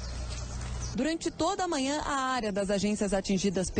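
A young woman speaks calmly into a microphone outdoors.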